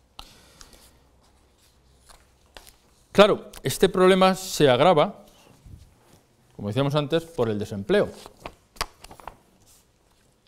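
A plastic bottle crinkles in a man's hands.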